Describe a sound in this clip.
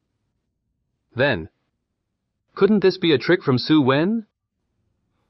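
Another young man asks a question in a surprised tone.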